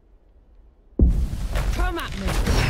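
A magic blast bursts with a loud boom.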